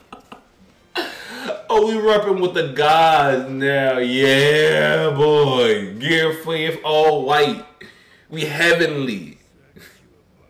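A man speaks excitedly close to a microphone.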